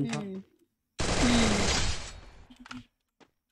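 Gunfire bursts out in a short, loud volley.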